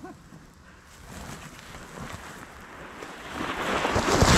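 A bubble wrap sled slides over snow and draws close.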